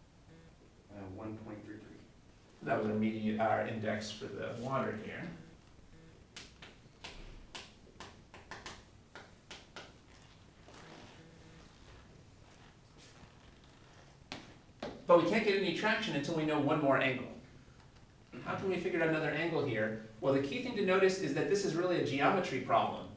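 A man lectures calmly and clearly nearby, in a slightly echoing room.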